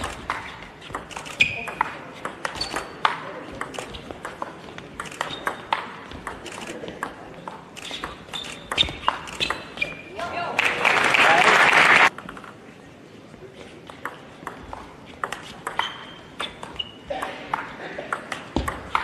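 A table tennis ball clicks quickly back and forth off paddles and the table.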